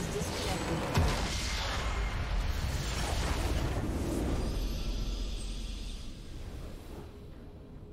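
A deep rumbling explosion booms and slowly fades.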